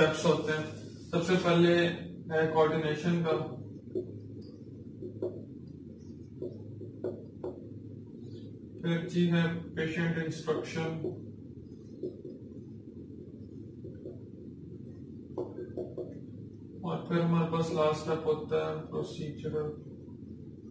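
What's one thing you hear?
A man speaks calmly nearby, explaining in bursts with pauses.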